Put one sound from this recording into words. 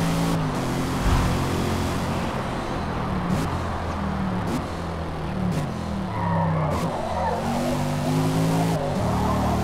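A car engine drops in pitch as the car brakes and downshifts.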